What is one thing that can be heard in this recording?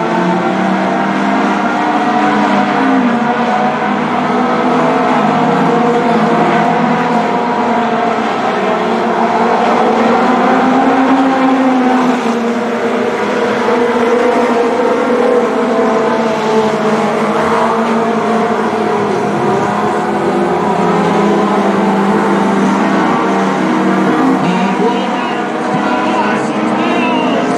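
Race car engines roar loudly as cars speed past.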